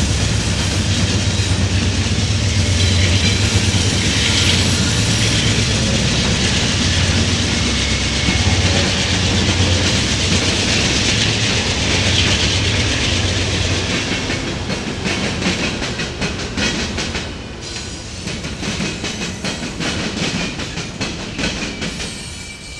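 Train wheels clack rhythmically over the rail joints.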